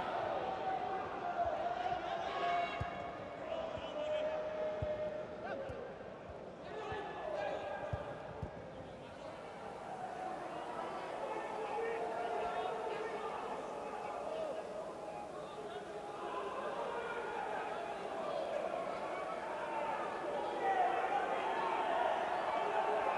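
A stadium crowd chants and sings loudly throughout.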